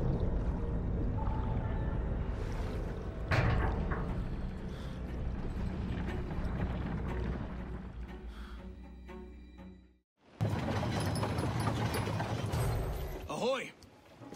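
Water gurgles and rushes in a deep underwater rumble.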